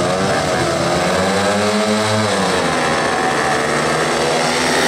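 Motorcycle engines roar as the bikes accelerate away at the start.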